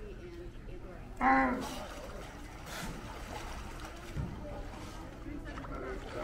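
Water splashes as a sea lion thrashes in the water.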